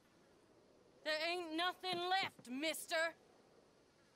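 A woman speaks pleadingly nearby.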